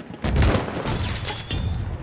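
A rifle bolt is worked with a metallic clack.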